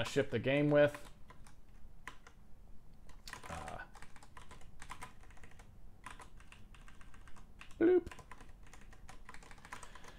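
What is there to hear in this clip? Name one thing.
Computer keys click in quick bursts.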